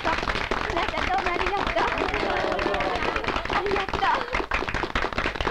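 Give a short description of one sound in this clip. Young men and women cheer and laugh nearby.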